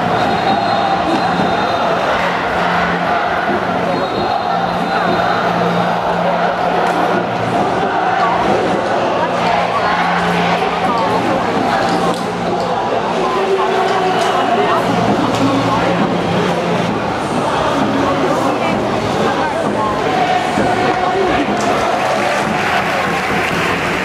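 A large stadium crowd chants and cheers outdoors.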